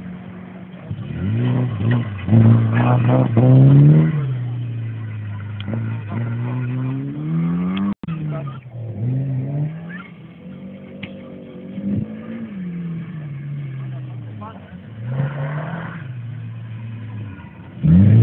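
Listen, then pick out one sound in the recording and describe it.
Tyres crunch and skid on loose gravel.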